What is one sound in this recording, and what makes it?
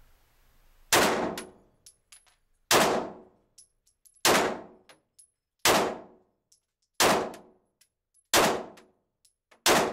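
A handgun fires single loud shots at a steady pace, ringing in an echoing room.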